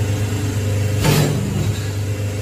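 A machine press thumps down once.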